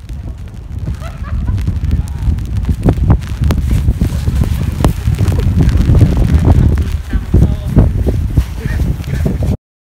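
Young people shout and laugh while playing in the snow.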